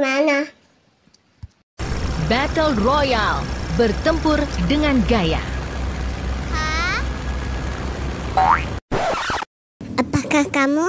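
A young girl speaks in a high voice.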